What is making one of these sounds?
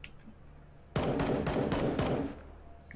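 A rifle fires a single shot.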